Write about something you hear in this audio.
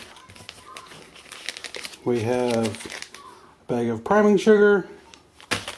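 A plastic bag crinkles as a hand handles it.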